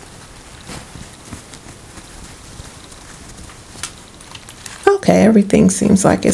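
Fabric rustles softly as fingers handle it.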